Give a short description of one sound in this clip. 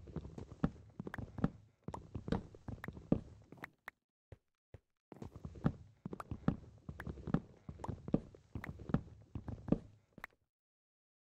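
Blocks crack and crumble in quick repeated knocks as they are dug away.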